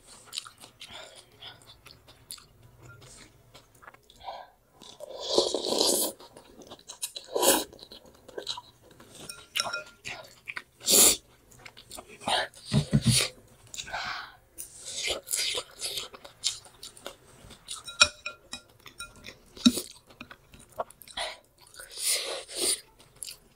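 A young woman chews food with her mouth close to the microphone.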